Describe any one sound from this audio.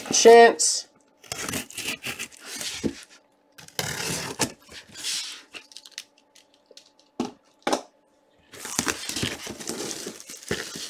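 Plastic wrap crinkles and rustles as hands turn a box over.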